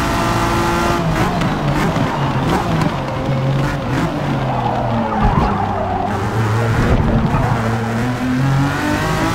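A racing car engine downshifts and rumbles while braking.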